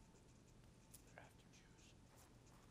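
A boot crunches on snow.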